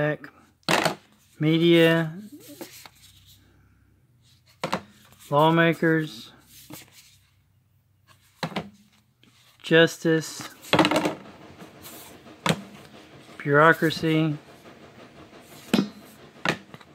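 Stiff cardboard cards slap and rustle as they are shuffled by hand.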